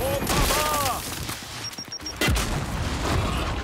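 Gunfire and explosions boom in a video game battle.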